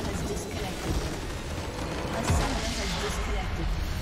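A tower crumbles with a heavy crash.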